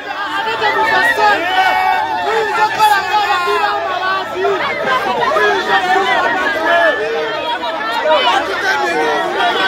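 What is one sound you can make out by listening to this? A young woman speaks into a microphone amid the crowd.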